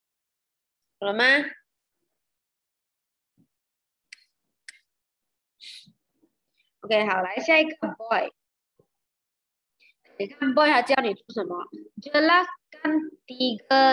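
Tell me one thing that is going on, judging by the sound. A young woman speaks calmly into a microphone, as if on an online call.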